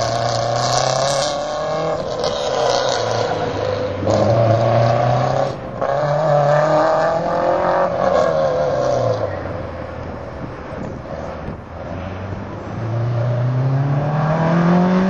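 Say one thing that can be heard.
A car engine revs hard, rising and falling as the car races through tight turns.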